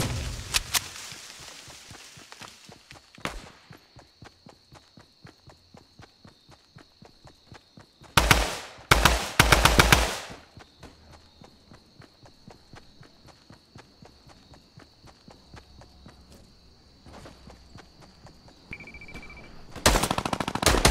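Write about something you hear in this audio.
Quick footsteps run steadily over grass.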